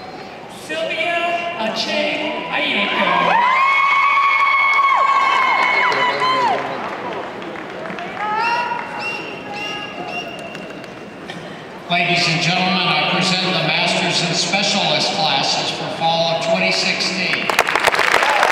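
A man reads out through a loudspeaker in a large echoing hall.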